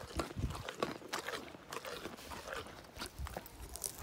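A pony crunches on a carrot up close.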